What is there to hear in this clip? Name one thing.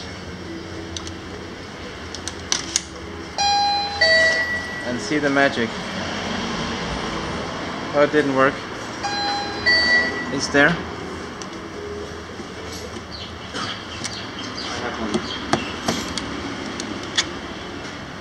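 A coin clinks into a coin slot.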